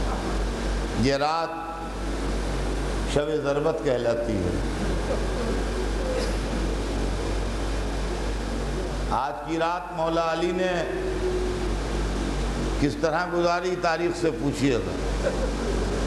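An elderly man speaks slowly and solemnly into a microphone, in bursts with pauses.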